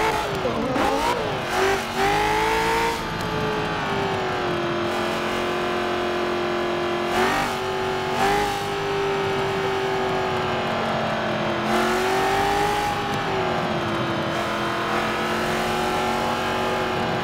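A racing car engine roars steadily, its pitch dipping and climbing with gear changes.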